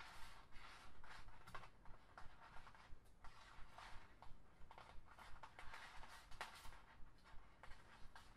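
Plastic strips rustle and crinkle as fingers weave them.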